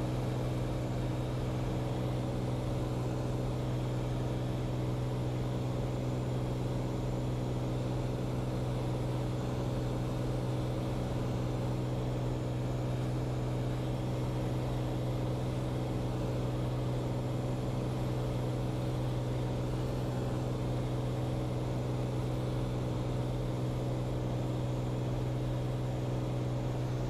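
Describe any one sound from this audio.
Wind rushes steadily past the plane.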